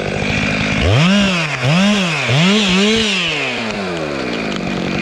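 A chainsaw engine revs up and down sharply several times.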